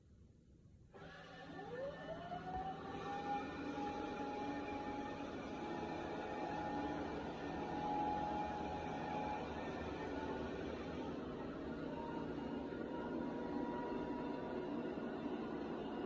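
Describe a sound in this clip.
A robot vacuum cleaner spins up with a rising whine and then hums and whirs steadily.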